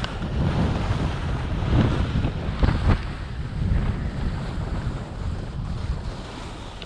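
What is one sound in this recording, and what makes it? Skis scrape and hiss over crusty snow.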